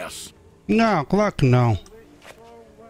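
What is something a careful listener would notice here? A young man speaks loudly and animatedly into a microphone.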